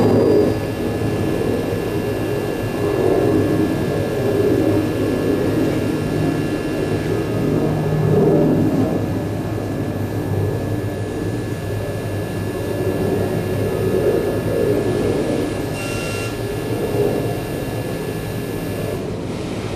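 Electronic music drones and rumbles through loudspeakers.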